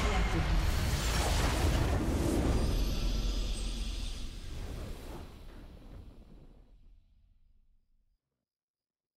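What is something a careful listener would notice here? A triumphant victory fanfare swells and fades out.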